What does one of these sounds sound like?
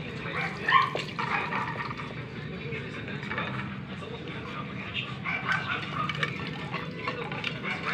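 Puppies eat from a plate.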